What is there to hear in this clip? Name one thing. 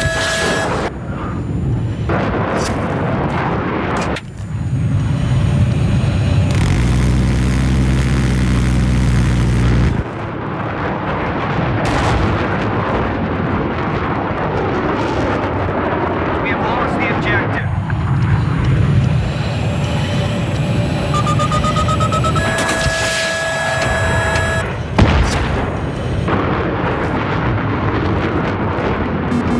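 A jet engine roars steadily throughout.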